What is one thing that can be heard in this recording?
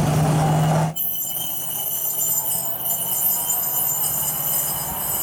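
A truck engine hums as the truck rolls away along the track.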